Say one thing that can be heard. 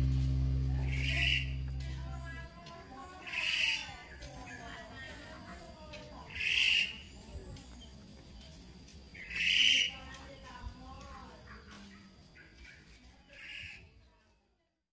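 A baby monkey squeaks in short, high cries.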